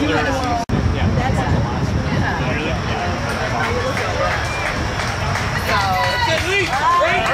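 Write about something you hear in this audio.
A crowd of young women and girls cheers and shouts outdoors.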